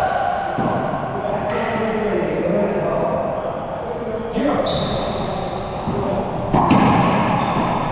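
Men talk casually in a large echoing room.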